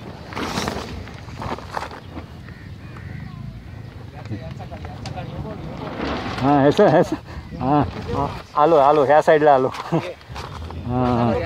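A fishing net rustles as it is handled.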